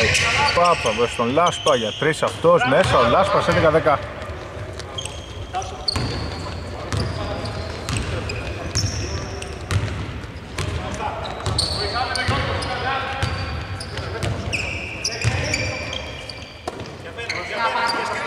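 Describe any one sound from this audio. Young men shout to each other in a large echoing empty hall.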